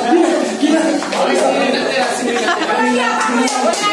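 Young men laugh loudly.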